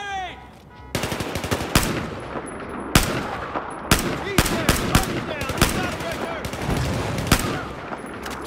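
A rifle fires loud, sharp shots that echo.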